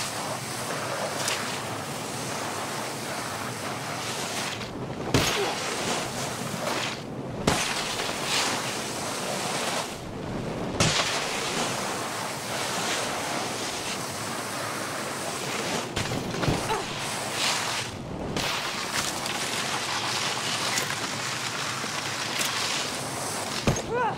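Skis hiss steadily over snow.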